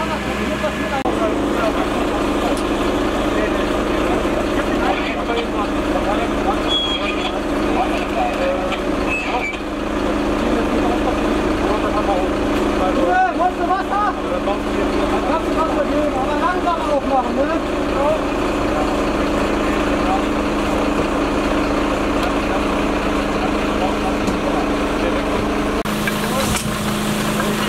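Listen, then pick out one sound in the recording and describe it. Men talk back and forth outdoors.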